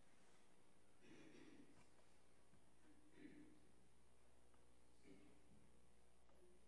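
A man speaks quietly and haltingly into a microphone, with long pauses.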